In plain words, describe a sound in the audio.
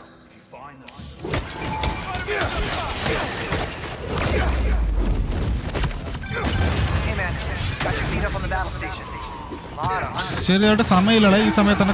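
Explosions and clashing fight sounds boom from a video game.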